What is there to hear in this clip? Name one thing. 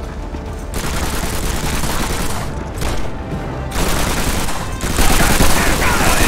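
Gunshots crack in rapid bursts nearby.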